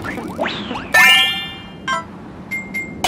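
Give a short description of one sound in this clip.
A short tinkling chime rings as a menu pops up.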